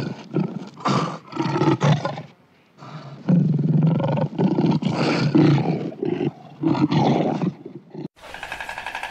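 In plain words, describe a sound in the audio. A lion growls and snarls close by.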